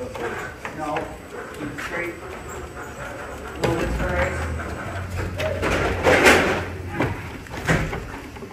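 A toy car's tyres scrape and knock over rocks and wood.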